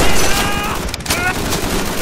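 A rifle is reloaded with a metallic click.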